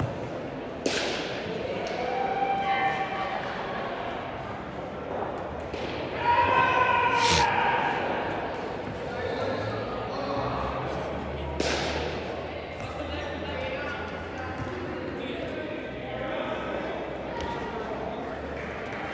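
Men shout to each other in a large echoing hall.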